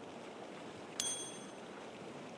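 A bright game chime rings.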